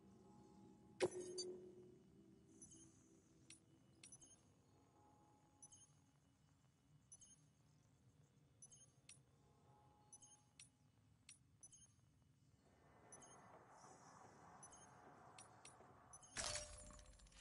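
Short electronic beeps and clicks sound at intervals.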